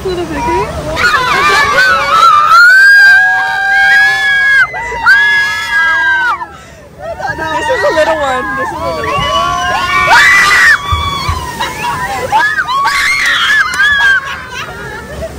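A woman screams and laughs with excitement.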